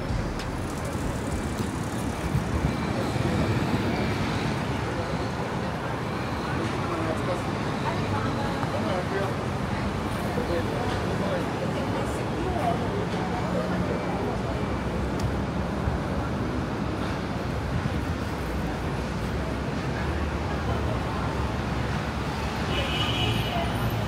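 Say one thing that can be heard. Busy city traffic rumbles and hums steadily outdoors.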